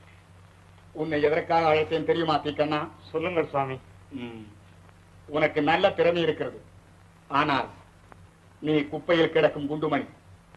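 A man speaks forcefully and with animation, heard through an old, thin film soundtrack.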